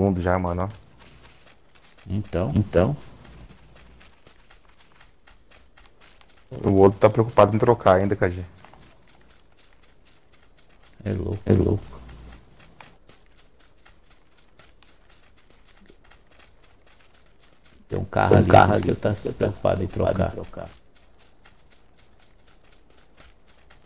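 Footsteps rustle through grass.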